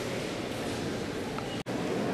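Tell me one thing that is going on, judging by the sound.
A crowd of people murmurs quietly in a large echoing hall.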